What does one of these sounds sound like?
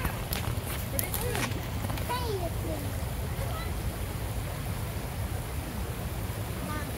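A stream rushes and gurgles over rocks close by, outdoors.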